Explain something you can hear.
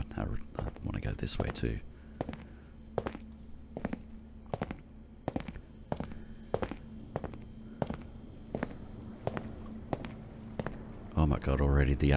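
Footsteps echo on a hard tiled floor.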